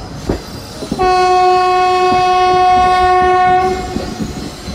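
A train horn blares loudly and steadily.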